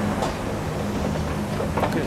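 An escalator rumbles and whirs.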